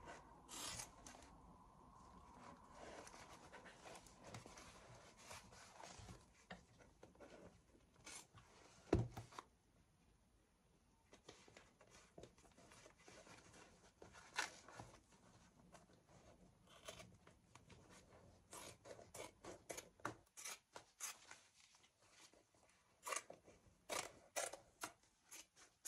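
Scissors snip through fabric and thread in short, quick cuts.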